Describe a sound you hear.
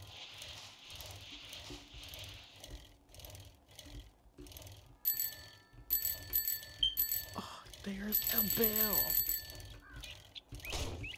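A dirt bike engine rumbles and sputters as it rides over rough ground.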